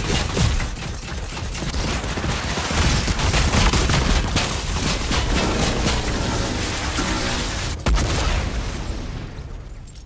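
Loud explosions boom and crackle in rapid succession.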